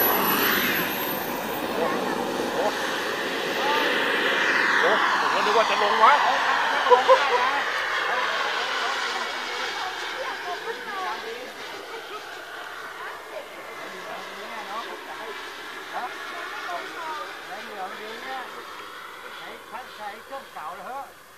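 A model jet's engine whines loudly as it takes off and flies overhead, then fades into the distance.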